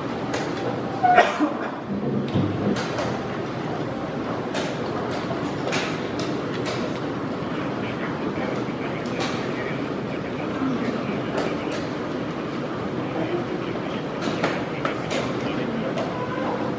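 A low murmur of many voices fills a room.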